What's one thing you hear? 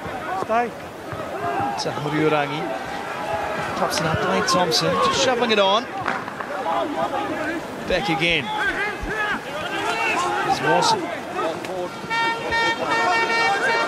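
Rugby players shout to each other on the field.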